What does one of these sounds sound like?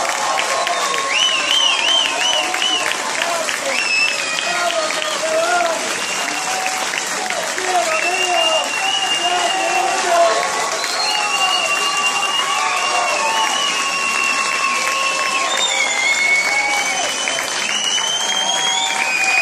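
A choir of elderly singers sings together through loudspeakers in a large hall.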